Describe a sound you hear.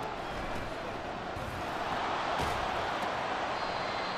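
Football players' pads thud together in a tackle.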